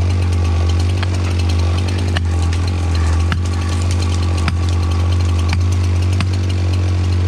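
An axe head strikes a wedge in a tree with sharp knocks.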